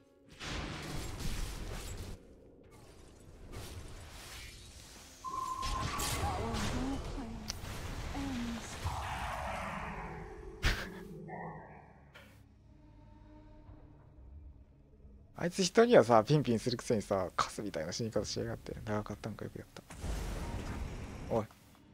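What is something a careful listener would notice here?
Spells crackle and zap in a fight between game characters.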